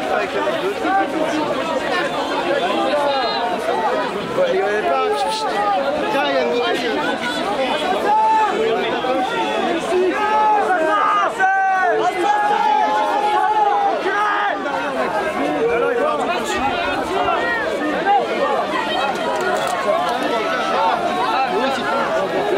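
A large crowd of men and women shouts and chants loudly close by, outdoors.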